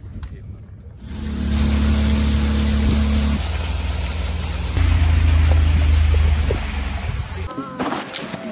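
Water rushes and sprays alongside a moving boat.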